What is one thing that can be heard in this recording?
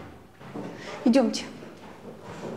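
A woman speaks briefly with emotion.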